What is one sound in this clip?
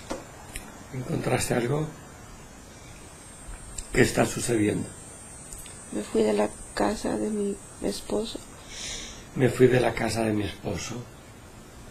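A young woman speaks slowly and softly, close to a microphone.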